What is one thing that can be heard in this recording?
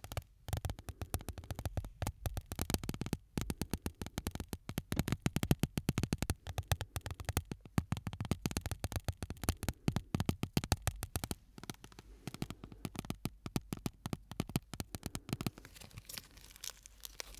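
Stiff plastic crinkles and crackles close up.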